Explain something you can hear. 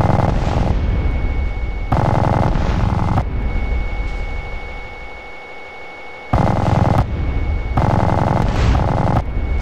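A small model plane engine buzzes loudly, surging and dropping away in bursts.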